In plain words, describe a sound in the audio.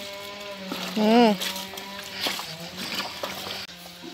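Water sloshes as clothes are scrubbed in a basin.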